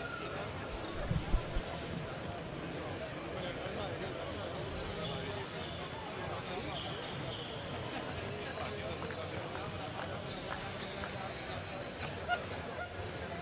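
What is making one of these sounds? Basketballs bounce with hollow thuds on a hard floor in a large echoing hall.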